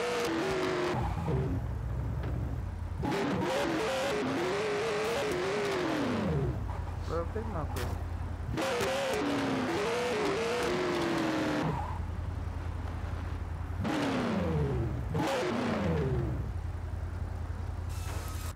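A car engine revs up and down, rising and falling in pitch as it shifts gears.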